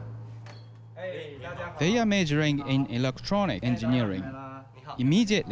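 Young men greet and talk cheerfully close by.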